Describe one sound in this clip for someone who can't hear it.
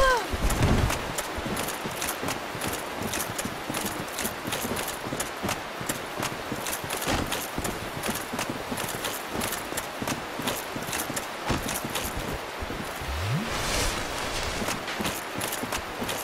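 An armoured knight's footsteps clank steadily over the ground.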